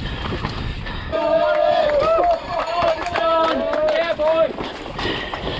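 Spectators cheer and shout nearby.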